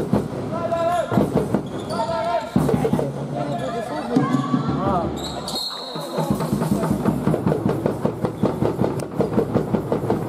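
A basketball bounces on a wooden floor in an echoing hall.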